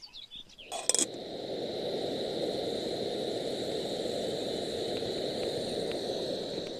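Batter sizzles loudly in a hot pan.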